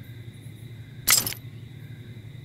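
Two heavy metal halves snap together with a loud clank.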